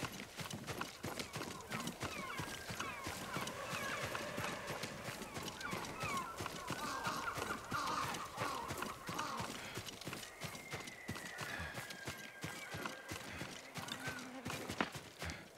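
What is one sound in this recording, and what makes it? Footsteps rustle quickly through leafy plants.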